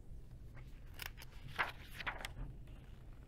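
Book pages rustle as they turn.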